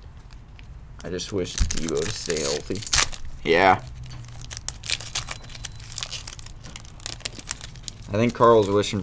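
A foil wrapper crinkles and tears as it is opened.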